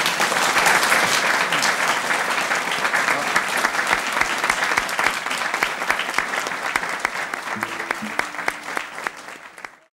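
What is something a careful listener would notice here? An audience applauds loudly, then the applause fades away.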